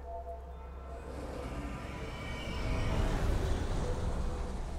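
A magical shimmering hum swells and rises.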